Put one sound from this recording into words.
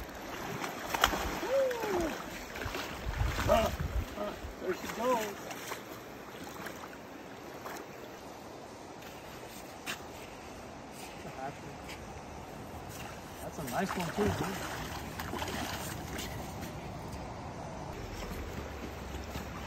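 A fish splashes and thrashes in shallow water.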